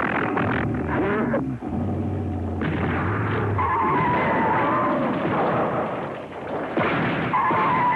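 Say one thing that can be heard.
Giant creatures grapple and thud against each other.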